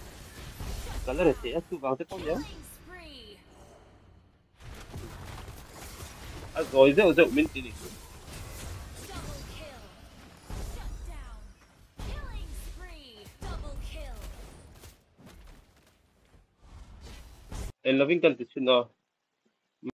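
Video game spell effects whoosh and crackle in a fight.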